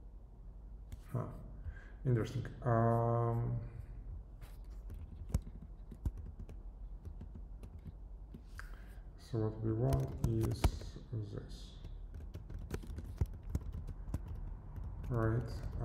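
A young man speaks calmly and close into a microphone, with pauses.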